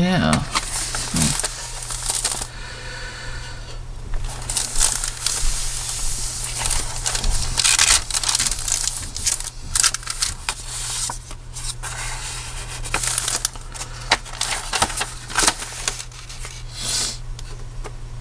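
Paper pages rustle and crinkle as they are turned and handled.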